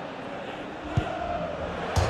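A football is struck hard once.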